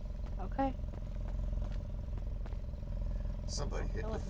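A car engine idles nearby.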